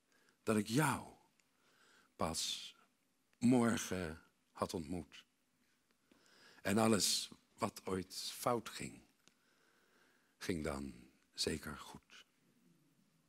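A man reads aloud with expression into a microphone, with pauses.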